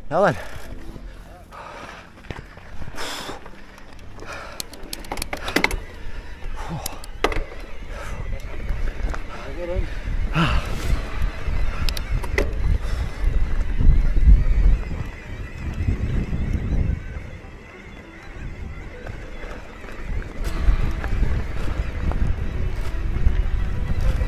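Bicycle tyres rumble and crunch over a rough gravel track.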